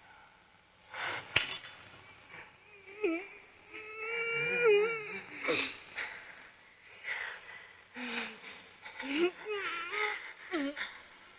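A young girl whimpers and cries out in distress, close by.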